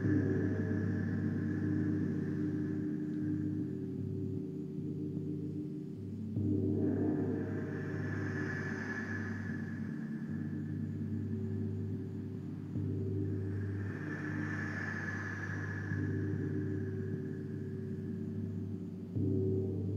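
A woman blows a small handheld instrument at her mouth, making a steady humming drone that swells now and then.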